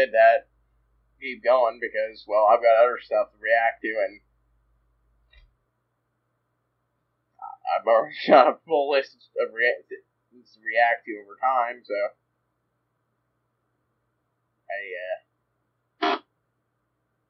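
A man talks casually into a close microphone, with pauses.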